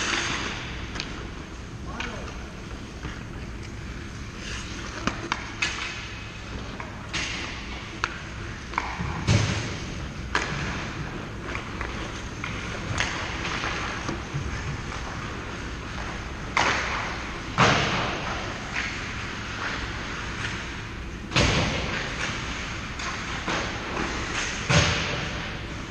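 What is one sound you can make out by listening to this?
Skate blades scrape and hiss on the ice close by, echoing in a large rink.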